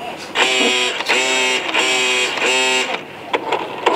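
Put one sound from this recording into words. A toy car plays a short electronic tune.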